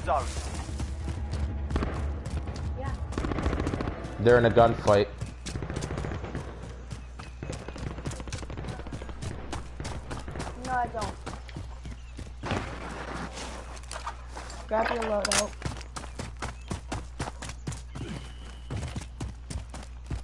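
Footsteps crunch over dirt and gravel at a steady pace.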